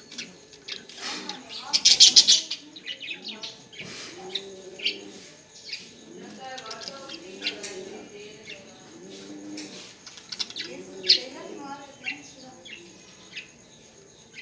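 Doves coo softly and repeatedly nearby.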